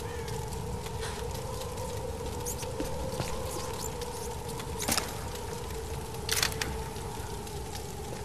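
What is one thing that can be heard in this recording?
A fire crackles in a barrel.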